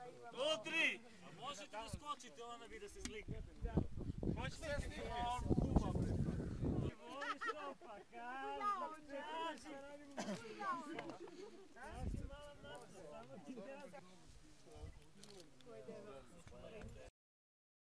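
Several men and women talk and call out nearby, outdoors in the open.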